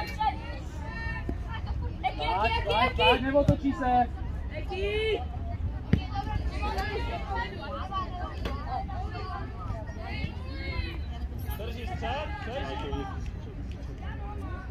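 Young children shout and call out outdoors.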